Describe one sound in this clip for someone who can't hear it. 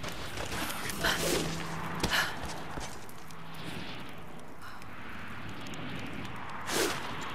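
Wooden planks creak and clatter as a woman climbs.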